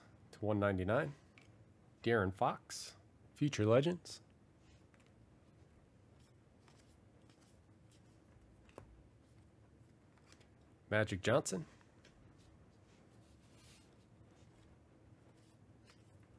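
Trading cards slide and rustle softly against each other.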